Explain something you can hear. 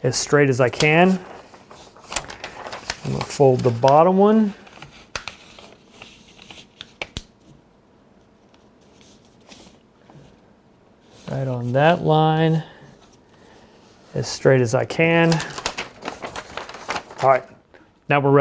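Stiff paper rustles and crinkles as it is folded and pressed flat.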